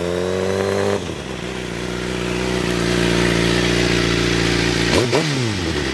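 A motorcycle engine rumbles loudly up close.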